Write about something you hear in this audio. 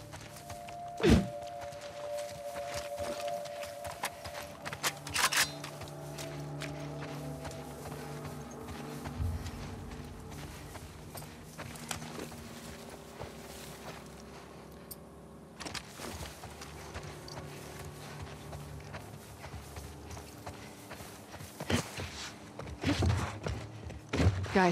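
Running footsteps rustle through tall grass.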